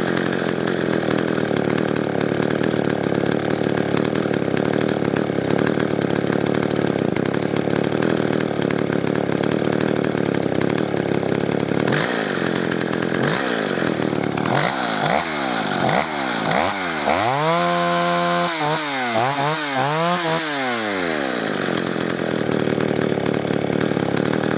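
A chainsaw engine idles steadily nearby.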